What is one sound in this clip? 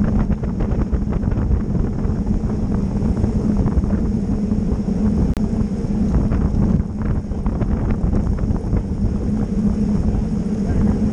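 Wind buffets a microphone loudly and steadily.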